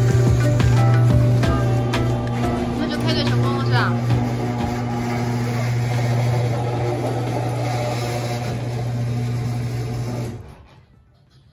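A garage door motor hums loudly and steadily.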